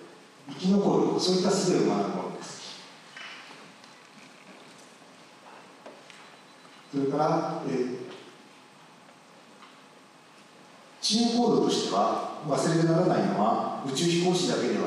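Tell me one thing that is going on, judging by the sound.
A person talks calmly through a loudspeaker in a large echoing hall, with pauses.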